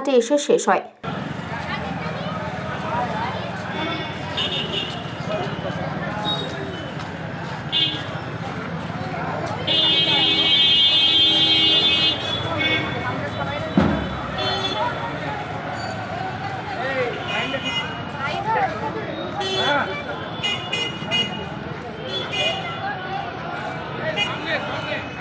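Street traffic rumbles steadily nearby.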